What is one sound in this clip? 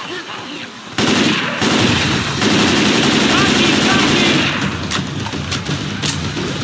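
Rapid gunfire from an assault rifle rattles.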